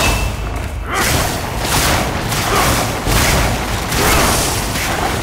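Lightning crackles and bursts.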